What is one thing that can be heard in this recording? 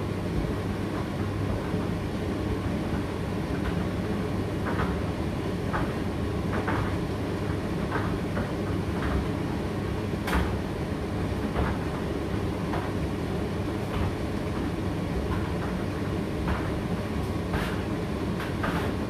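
A condenser tumble dryer runs with a low steady hum and rumble.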